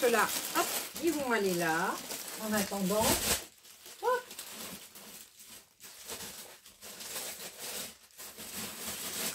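Paper and plastic sleeves rustle as they are shuffled.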